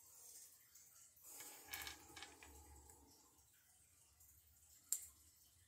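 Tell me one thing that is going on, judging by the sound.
Small plastic toy parts click and rattle in a man's hands.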